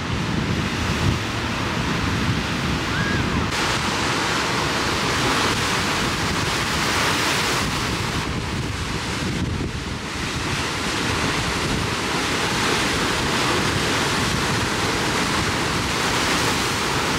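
Waves crash and churn against rocks close by, with a steady roar of surf.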